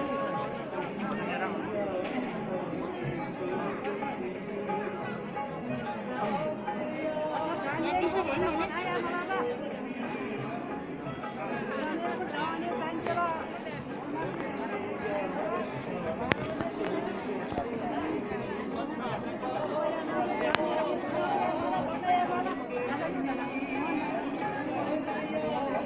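A crowd of men, women and children chatter nearby, outdoors.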